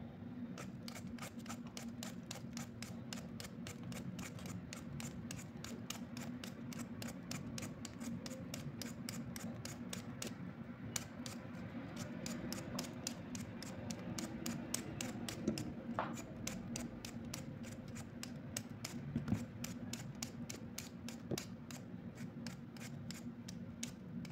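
A peeler scrapes rapidly over a potato.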